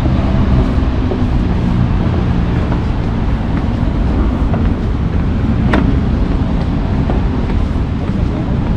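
Footsteps thud on a wooden footbridge.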